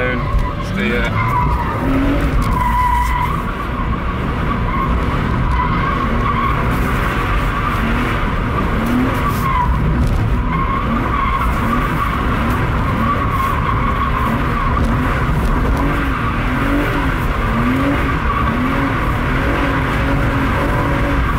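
Car tyres squeal on tarmac as the car slides.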